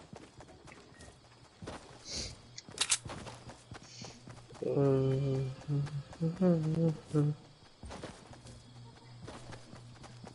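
Quick footsteps patter on grass.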